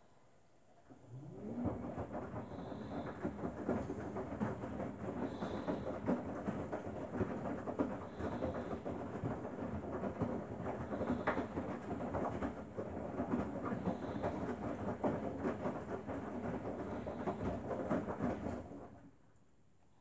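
A front-loading washing machine's drum tumbles wet laundry.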